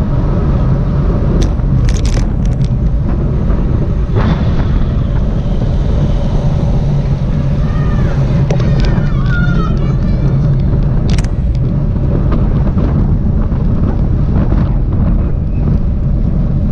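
Bicycle tyres hum on pavement.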